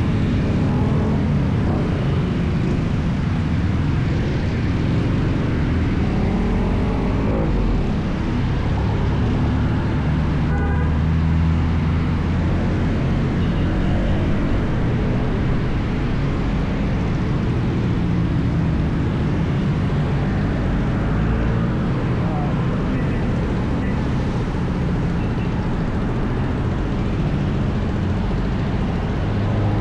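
A motor scooter engine hums steadily up close.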